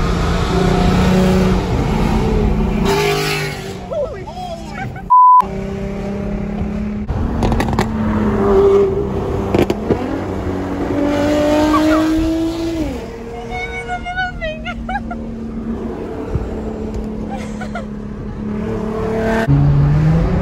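A car engine hums steadily while driving on a highway.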